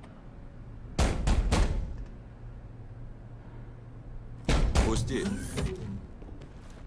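A fist knocks hard on a door.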